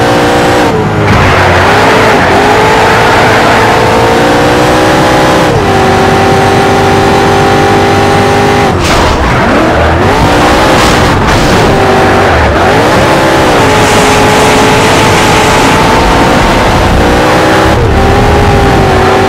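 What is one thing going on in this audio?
A racing car engine roars loudly, revving up through the gears and dropping as it brakes.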